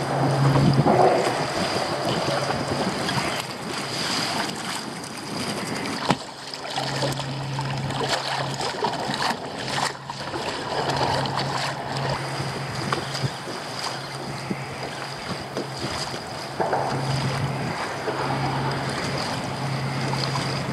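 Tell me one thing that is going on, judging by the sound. Water splashes and laps against a kayak, outdoors in wind.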